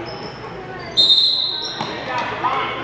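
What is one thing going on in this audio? A referee's whistle blows sharply in an echoing gym.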